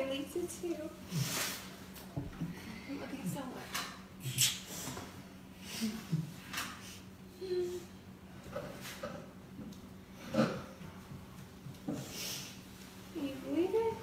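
A girl sobs and cries.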